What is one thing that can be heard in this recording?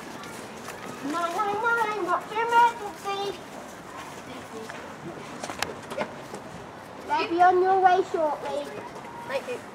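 Children chatter and call out in the distance.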